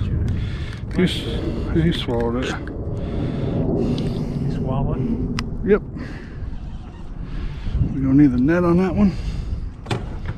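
A man talks with excitement close by.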